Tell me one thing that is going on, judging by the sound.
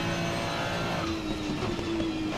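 A racing car's engine drops in pitch as the driver shifts down.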